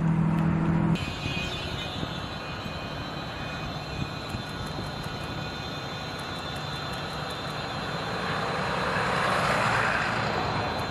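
A pickup truck approaches and rushes past close by.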